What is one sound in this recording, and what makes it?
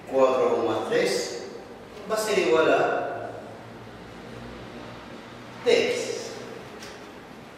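A man speaks calmly, explaining, close by.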